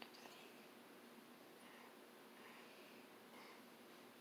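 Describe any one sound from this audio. A nail polish brush strokes softly across a fingernail.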